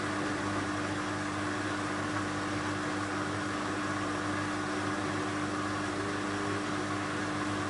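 A washing machine drum spins with a steady hum.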